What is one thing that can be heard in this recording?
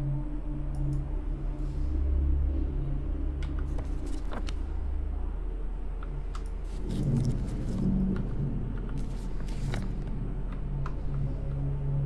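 Keyboard keys click softly now and then.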